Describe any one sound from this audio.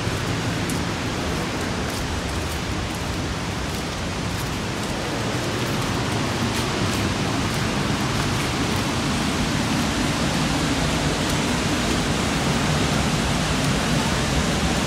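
Sandals slap and scuff on stone steps.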